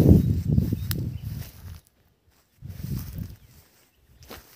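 Wind gusts outdoors and rustles leafy bushes.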